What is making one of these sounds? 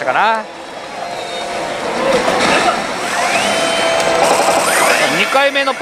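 A slot machine plays electronic jingles and music.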